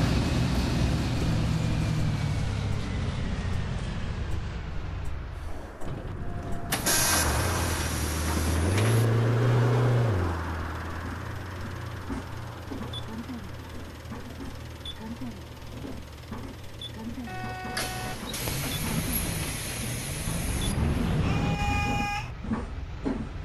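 A bus engine hums and drones.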